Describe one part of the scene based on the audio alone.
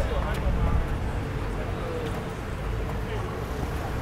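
Wheels of a stroller bump down steps.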